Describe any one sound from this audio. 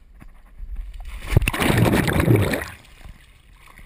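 Water splashes loudly as a person plunges in.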